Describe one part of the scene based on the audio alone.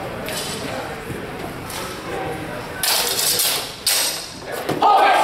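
Wooden practice swords clack together as two fencers spar.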